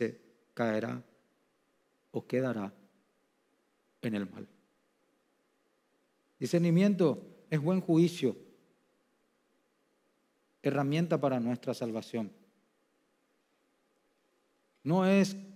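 A middle-aged man speaks slowly and calmly through a microphone, with long pauses.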